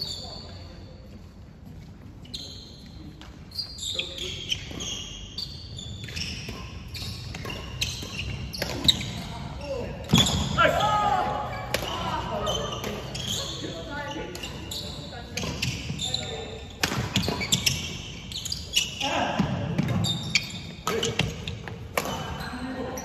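Shoes squeak and patter on a wooden floor.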